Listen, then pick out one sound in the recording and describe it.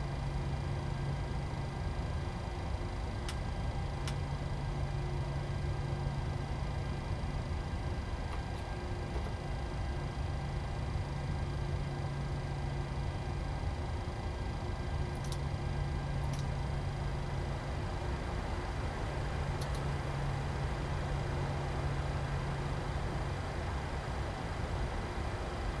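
Aircraft engines hum steadily at idle.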